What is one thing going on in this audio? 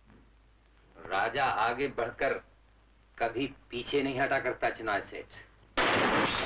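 A young man speaks forcefully and angrily nearby.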